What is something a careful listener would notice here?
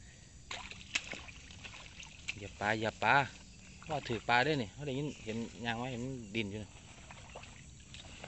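Boots squelch through wet mud.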